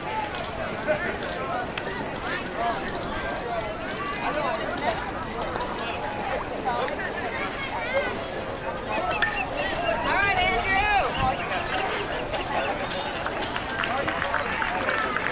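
Several voices of children and adults shout and cheer outdoors.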